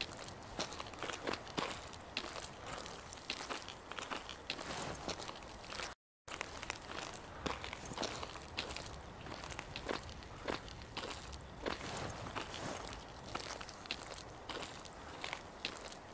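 Footsteps thud steadily on rough ground.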